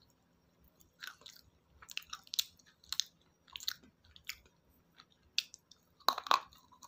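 A woman makes soft, wet mouth clicks and smacks close to a microphone.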